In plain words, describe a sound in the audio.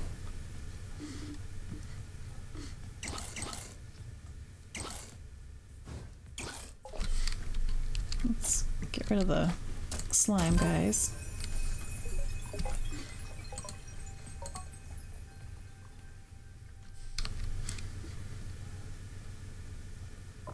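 Short electronic menu blips sound as items are selected.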